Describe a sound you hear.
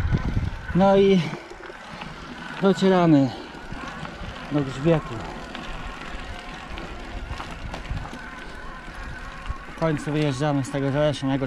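Bicycle tyres crunch and rattle over a gravel track.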